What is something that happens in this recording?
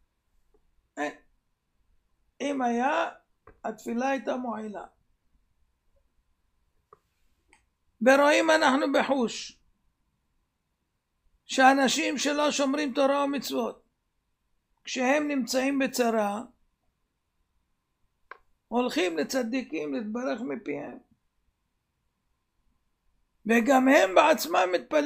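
An elderly man speaks slowly and calmly in phrases with pauses, close to a microphone.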